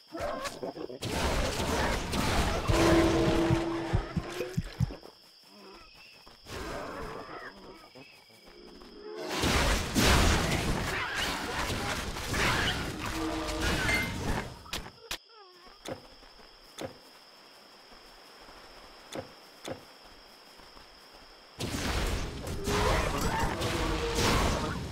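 Fire bolts whoosh and explode.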